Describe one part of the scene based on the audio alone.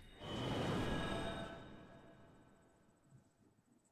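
A heavy blow lands with a crash and rings out, slowly fading.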